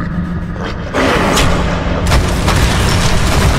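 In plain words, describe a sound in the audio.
Heavy stone blocks rumble and crash apart with a loud roar.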